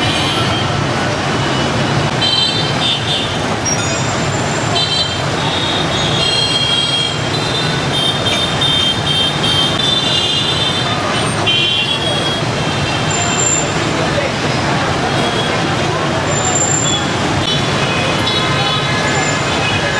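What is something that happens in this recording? Motorbike and car horns honk repeatedly.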